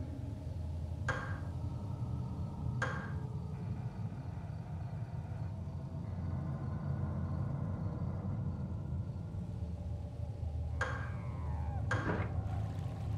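Short soft menu chimes ring out a few times.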